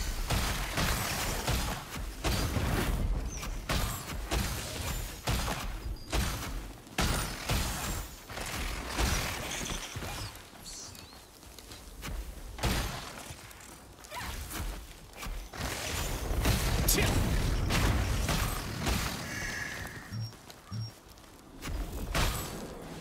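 Magic spells burst with sharp crackling blasts.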